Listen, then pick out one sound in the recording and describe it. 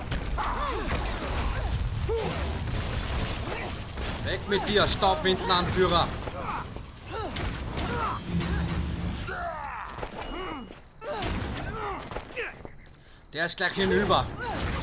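Magic blasts and weapon strikes crash in a fight.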